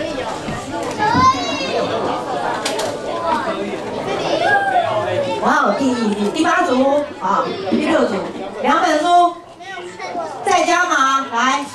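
Children chatter and exclaim nearby.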